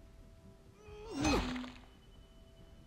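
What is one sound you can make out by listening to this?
A bat strikes with a heavy thud.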